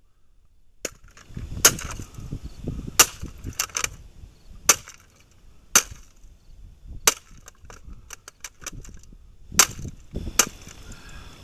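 A hammer strikes a hard object in sharp, repeated knocks.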